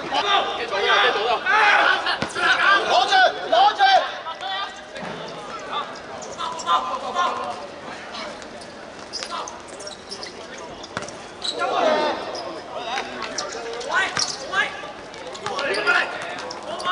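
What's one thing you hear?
Young men shout and call out to each other across an outdoor pitch.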